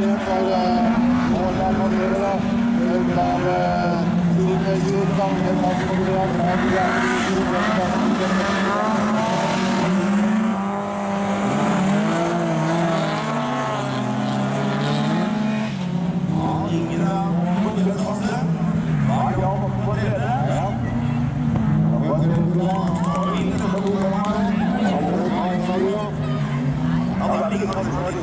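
A rally car engine revs hard, rising and falling as the car races around the track.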